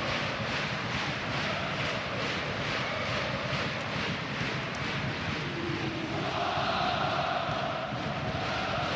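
A large stadium crowd chants and cheers steadily, swelling louder near the end.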